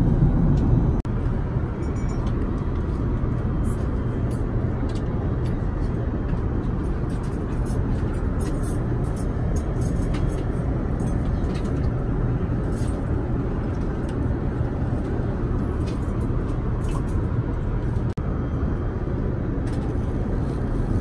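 A low steady hum of an airliner cabin fills the background.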